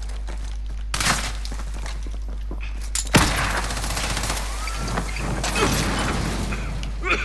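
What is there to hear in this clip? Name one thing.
Gunshots fire loudly.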